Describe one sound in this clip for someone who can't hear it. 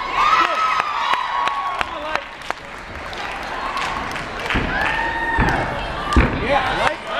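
A small crowd of spectators cheers and whistles in a large echoing gym.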